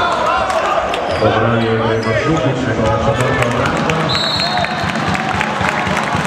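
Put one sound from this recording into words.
A crowd cheers loudly in an echoing hall.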